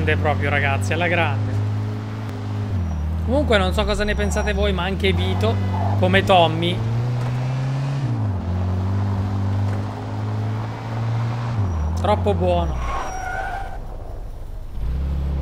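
A car engine hums steadily and shifts pitch as it changes gear.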